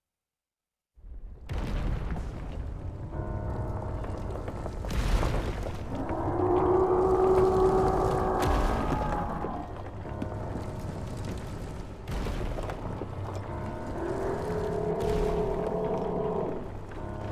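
A deep rumble of flowing lava rolls on steadily.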